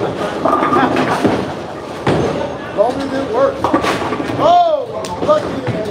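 A bowling ball rolls down a lane and crashes into pins.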